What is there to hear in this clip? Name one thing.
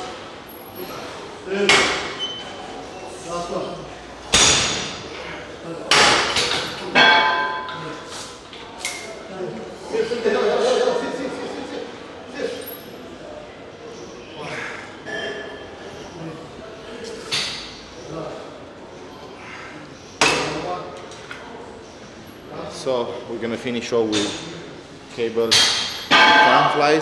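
A man breathes hard and grunts with effort.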